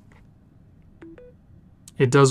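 A phone gives two short high beeps as it starts charging.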